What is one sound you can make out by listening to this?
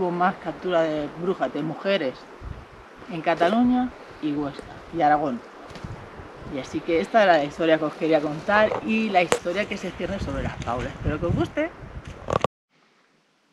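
A middle-aged woman talks calmly and with animation close by.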